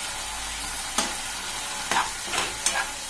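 A metal spoon scrapes and clinks against a wok while stirring chickpeas.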